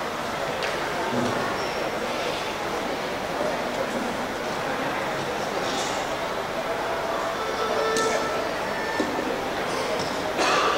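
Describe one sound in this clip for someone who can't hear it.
Bowed string instruments play short tuning notes in a large hall.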